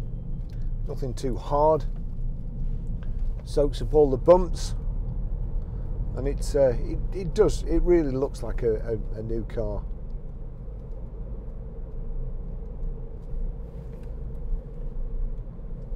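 A car engine hums low and steadily.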